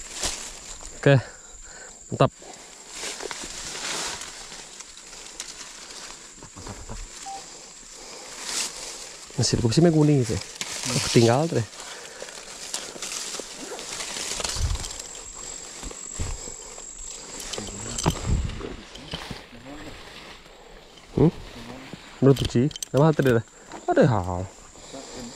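A man talks nearby in a calm voice, outdoors.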